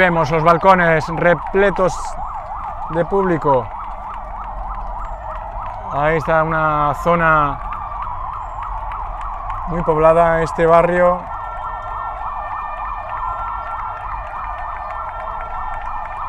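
A police siren wails rapidly up and down nearby.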